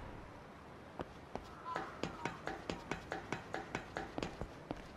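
Footsteps clomp steadily down wooden stairs.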